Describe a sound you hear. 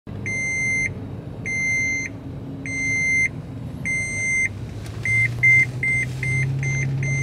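A car's warning chime beeps slowly, then faster.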